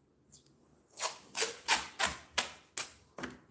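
Masking tape rips as it is pulled off the roll in short bursts.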